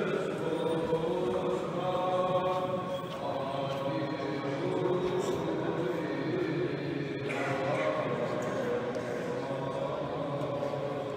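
A man chants in a slow, drawn-out voice in a large echoing hall.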